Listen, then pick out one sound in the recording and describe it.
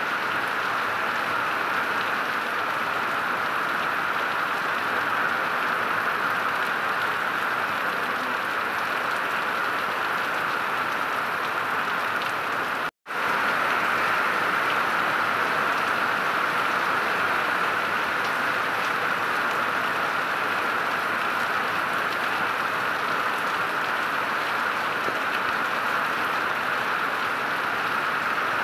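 Heavy rain pours steadily outdoors, splashing on wet pavement.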